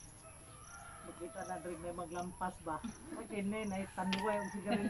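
A middle-aged woman speaks nearby in a calm voice.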